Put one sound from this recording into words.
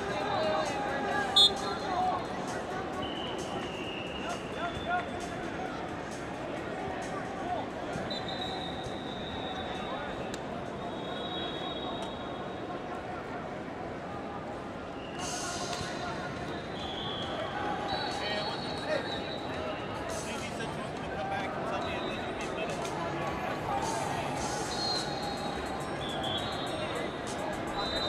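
Whistles shrill in short blasts, near and far.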